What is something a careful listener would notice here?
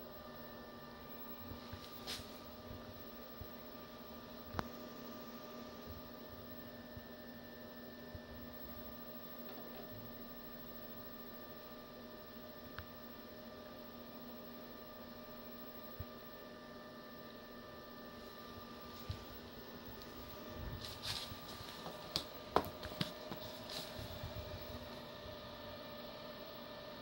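Electronic equipment hums with a steady, faint whine.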